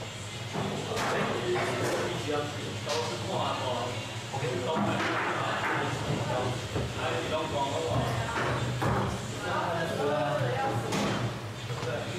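A foosball is struck sharply by rod figures and bangs off the table walls.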